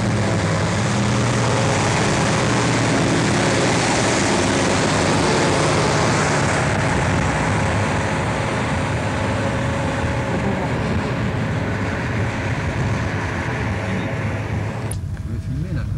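Heavy tyres crunch on a dirt road.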